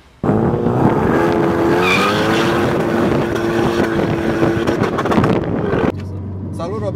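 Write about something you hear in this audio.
A car engine roars loudly as it accelerates away.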